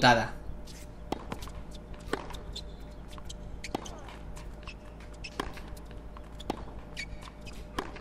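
A tennis ball is struck by rackets with sharp pops.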